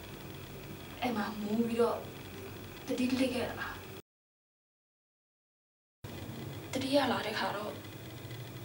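A young woman speaks close by in a pained, pleading voice.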